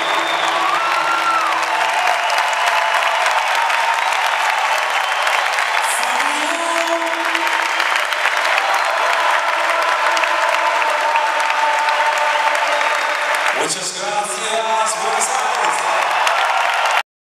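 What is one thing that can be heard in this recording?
A live rock band plays loudly in a large arena.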